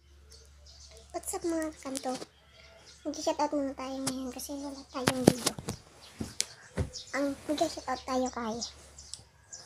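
A young boy talks close to a phone's microphone.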